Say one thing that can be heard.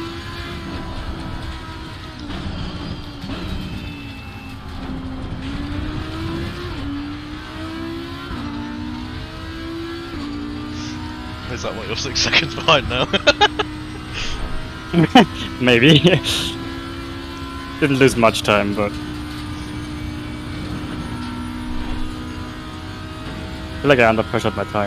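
A racing car engine roars, climbing in pitch and dropping back with each gear change.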